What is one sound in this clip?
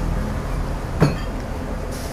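A fork clinks against a bowl.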